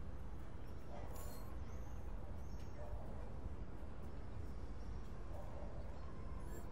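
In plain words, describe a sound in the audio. Soft electronic chimes sound.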